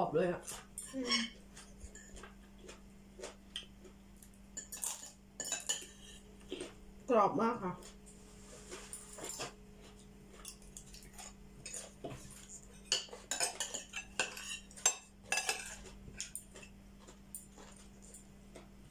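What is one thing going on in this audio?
Cutlery clinks and scrapes against plates.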